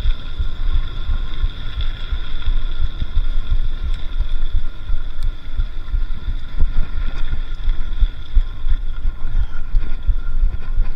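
A bicycle rattles over bumps.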